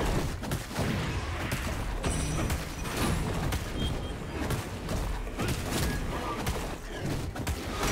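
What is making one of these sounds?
Game spell effects crackle and burst in quick bursts.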